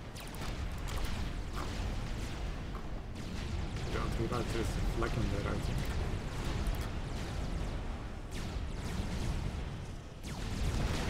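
Weapons fire in rapid bursts over a low rumble of explosions.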